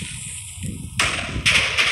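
Blocks of explosive blow up with loud, crackling booms.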